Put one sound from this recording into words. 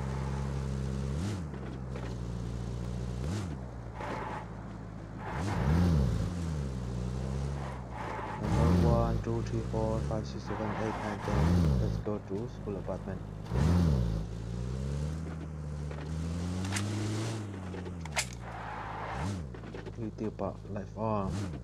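A jeep engine hums steadily and revs up and down repeatedly.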